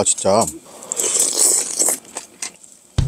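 A man slurps soup from a spoon.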